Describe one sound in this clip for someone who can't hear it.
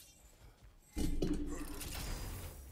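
A heavy chest bursts open with a deep rumbling whoosh.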